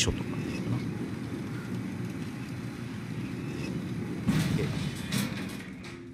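A metal gate rattles and clanks open.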